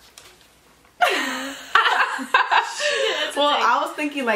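Two young women laugh loudly and brightly close by.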